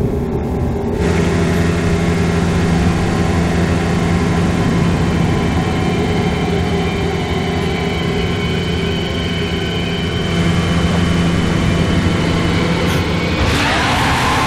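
A motorboat engine drones steadily.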